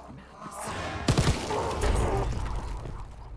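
A gun fires a few loud shots in a burst.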